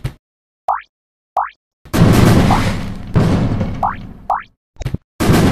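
Short rising chirps sound as bombs are dropped.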